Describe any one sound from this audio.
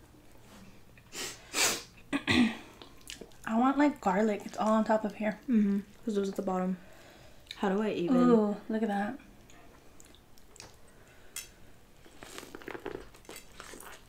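Hands pull apart wet seafood with crackling, squelching sounds.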